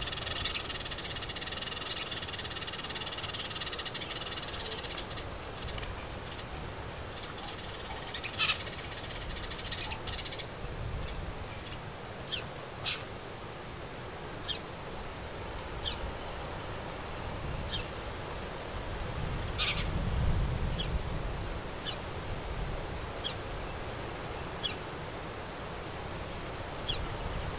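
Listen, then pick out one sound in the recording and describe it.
A small bird chirps nearby in short, sharp calls.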